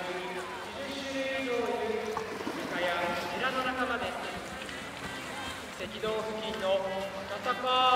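A large animal splashes through water close by.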